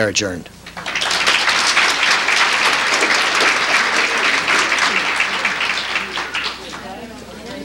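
An audience applauds in a large room.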